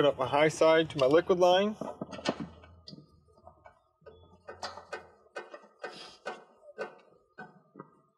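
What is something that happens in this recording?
A hose fitting clicks and scrapes as it is screwed onto a metal valve.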